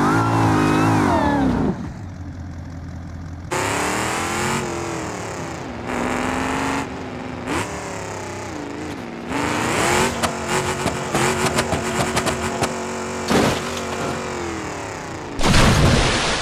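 A truck engine revs and roars.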